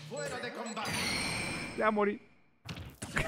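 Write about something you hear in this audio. A video game plays with whooshing and blasting effects.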